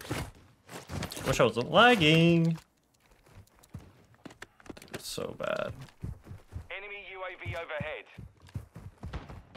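A young man talks through a headset microphone.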